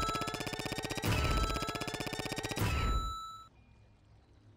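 A rapid electronic ticking counts up a score.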